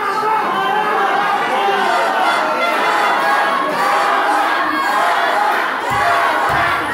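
A large crowd cheers and shouts loudly in an echoing hall.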